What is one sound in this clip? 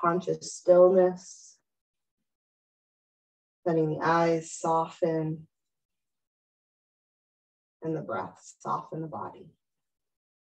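A woman speaks calmly and slowly, close by, with long pauses.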